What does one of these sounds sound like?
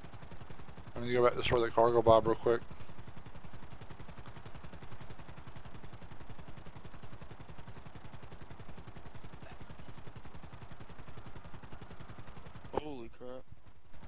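A middle-aged man speaks briefly and casually into a microphone, close up.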